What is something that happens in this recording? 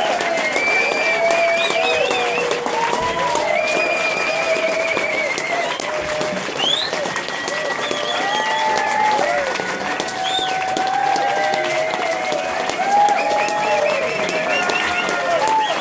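A man sings into a microphone over loudspeakers.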